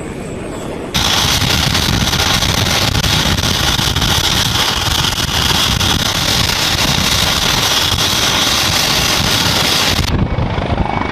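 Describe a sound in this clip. A helicopter engine whines loudly up close.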